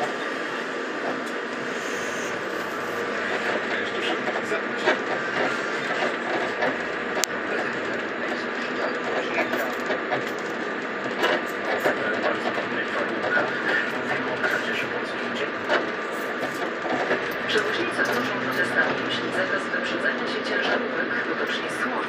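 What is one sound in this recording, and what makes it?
A car engine hums steadily while driving slowly.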